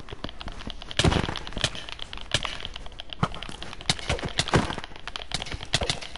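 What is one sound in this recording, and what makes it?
A game character is hit with quick thudding blows.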